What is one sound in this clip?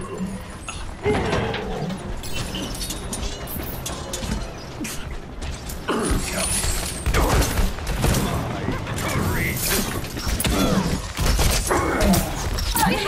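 A video game grenade launcher fires with sharp thumps.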